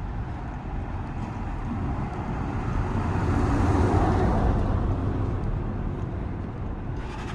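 A vehicle drives past on the street.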